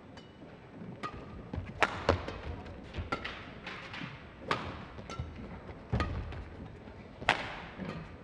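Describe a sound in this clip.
Badminton rackets smack a shuttlecock back and forth in a large indoor hall.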